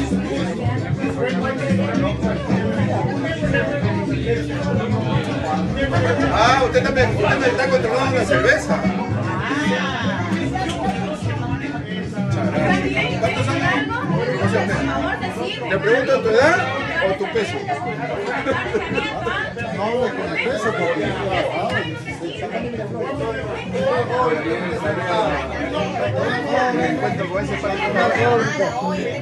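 Several men talk and laugh close by.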